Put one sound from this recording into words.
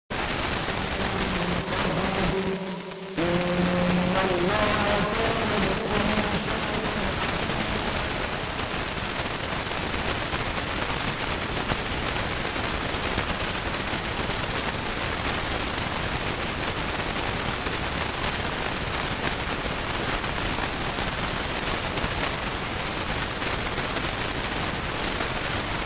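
A radio hisses with loud, steady static.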